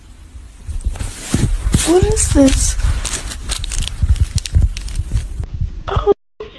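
A candy wrapper crinkles in a hand.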